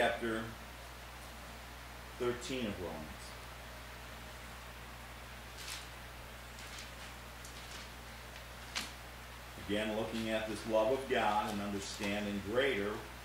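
A middle-aged man reads aloud calmly, close by.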